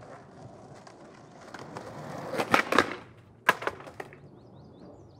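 A skateboard rolls and clatters on pavement.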